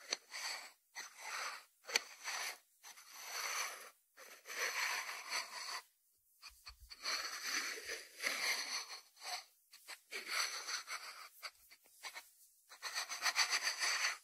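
Fingertips rub and scratch across a ceramic lid.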